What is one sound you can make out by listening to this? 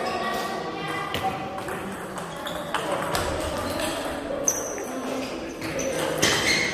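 A table tennis ball clicks sharply back and forth off paddles and the table in an echoing hall.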